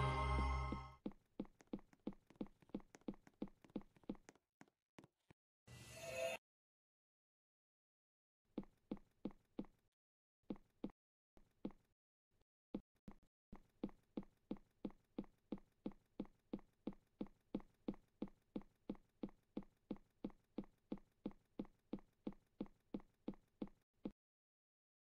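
Footsteps tap steadily across a wooden floor.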